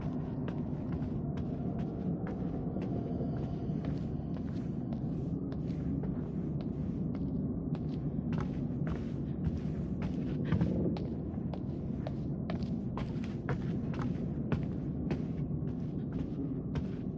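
Footsteps thud on wooden floorboards at a steady walking pace.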